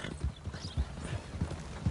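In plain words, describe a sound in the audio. A wagon's wooden wheels rattle nearby.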